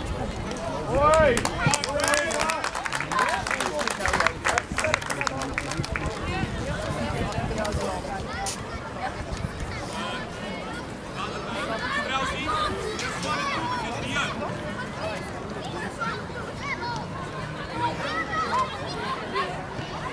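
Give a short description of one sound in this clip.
A crowd of men and women cheers and shouts nearby.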